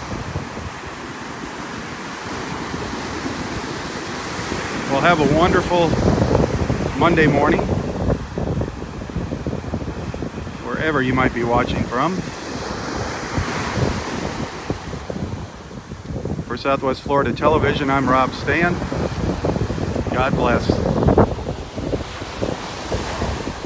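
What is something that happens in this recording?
Waves break and wash up onto a beach.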